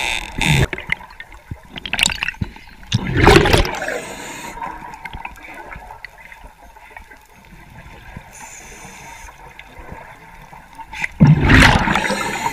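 A scuba diver breathes out through a regulator, bubbles rushing and gurgling in loud bursts underwater.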